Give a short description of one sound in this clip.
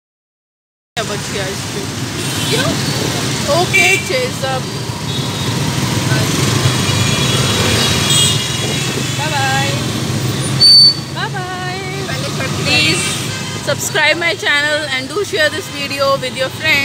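Car traffic rumbles past on a busy street.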